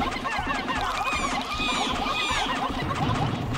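A large beast squawks loudly.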